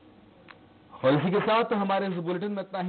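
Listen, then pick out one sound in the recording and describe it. A young man speaks steadily into a microphone, like a news reader.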